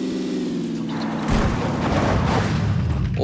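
A car crashes and tumbles with a heavy thud.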